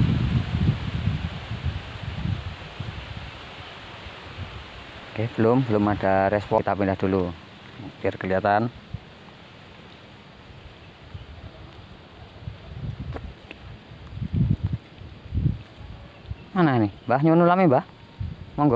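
Small waves lap gently against a grassy bank.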